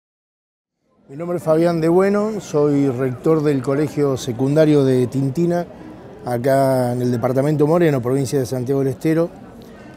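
A middle-aged man speaks calmly and with animation close to a microphone.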